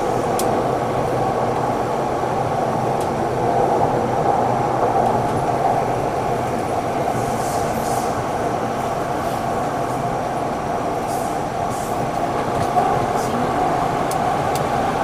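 A train rumbles steadily through a tunnel.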